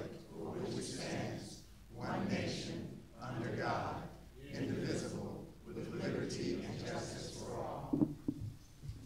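A group of adults recite together in unison in a room.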